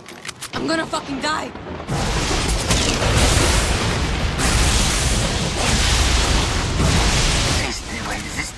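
A rifle fires shots in quick bursts.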